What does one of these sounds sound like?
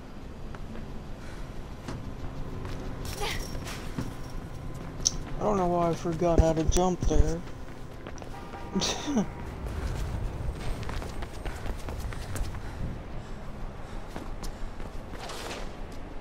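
Footsteps run quickly across a hard rooftop.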